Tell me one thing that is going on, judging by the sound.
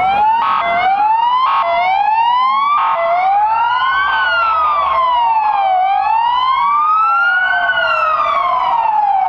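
Sirens wail and sweep up and down as a convoy passes close by.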